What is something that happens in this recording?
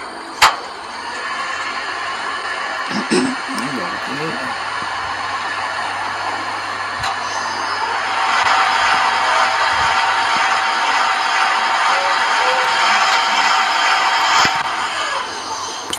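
A crane engine hums steadily.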